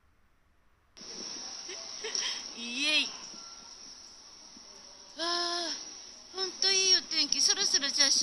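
A young woman speaks with animation close to the microphone, her voice a little muffled.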